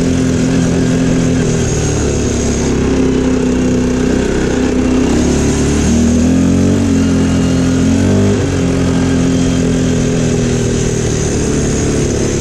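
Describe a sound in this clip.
A quad bike engine rumbles steadily and revs up and down.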